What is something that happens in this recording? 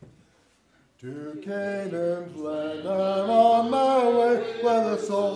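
A congregation sings a hymn together in an echoing hall.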